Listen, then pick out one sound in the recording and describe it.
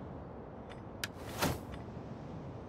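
A game menu clicks as a panel opens.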